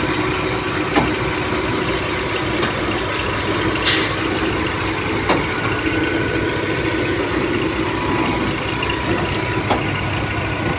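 Metal clanks sharply now and then.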